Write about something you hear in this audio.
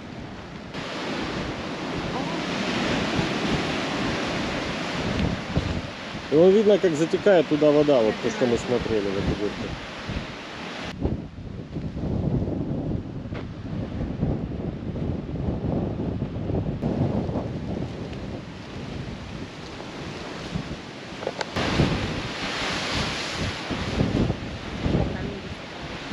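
Waves crash and wash against rocks below.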